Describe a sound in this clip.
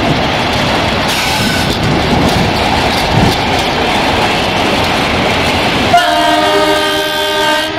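A train rumbles by with wheels clattering on the rails.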